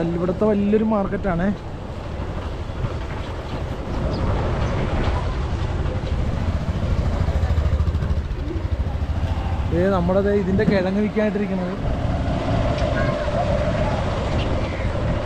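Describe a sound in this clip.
A scooter engine hums steadily close by.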